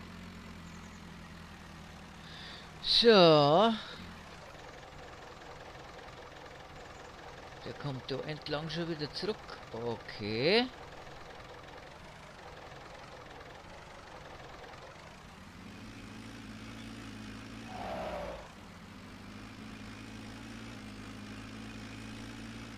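A tractor engine rumbles steadily and grows louder as the tractor picks up speed.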